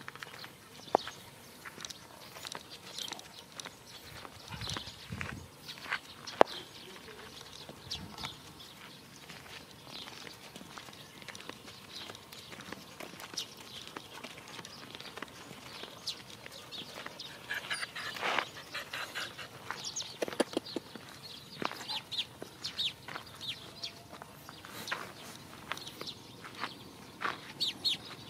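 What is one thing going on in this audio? A dog pants heavily nearby.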